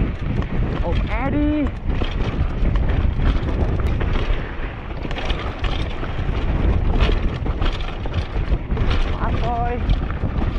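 Bike tyres rumble and crunch over a rough dirt trail.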